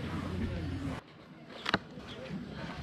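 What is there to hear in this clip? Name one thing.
A foam food box creaks and snaps open.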